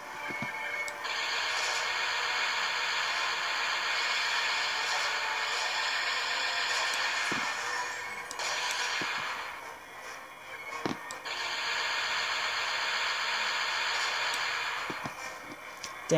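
Laser cannons fire in rapid bursts through small laptop speakers.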